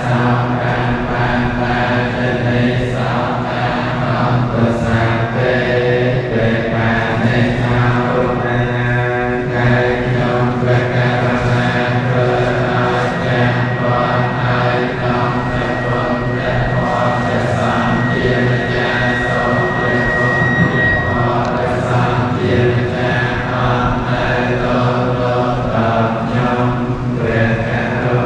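A large group of men chants together in a steady drone, echoing in a large hall.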